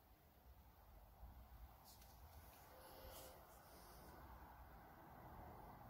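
Metal balls click softly against each other.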